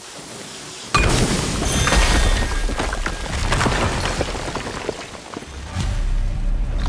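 A wall shatters with a loud crash of falling debris.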